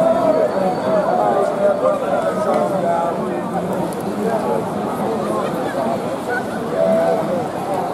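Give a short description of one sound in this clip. A busy crowd of men and women chatters outdoors.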